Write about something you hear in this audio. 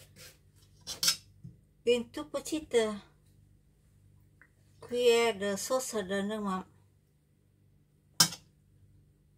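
A spoon clinks against a metal bowl.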